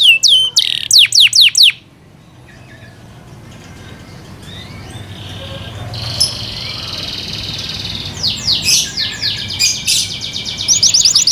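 A canary sings loud, sharp whistles and trills up close.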